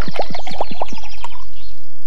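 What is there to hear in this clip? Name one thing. A man gulps down a drink.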